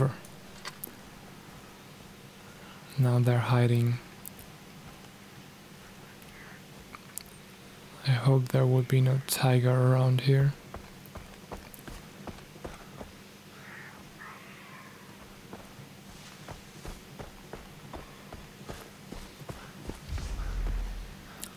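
Footsteps pad softly over grass and a dirt path.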